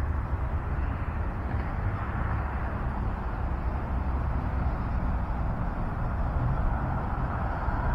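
Traffic rumbles steadily along a city street.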